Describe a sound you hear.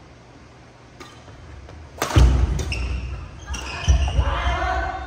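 A racket smacks a shuttlecock in a large echoing hall.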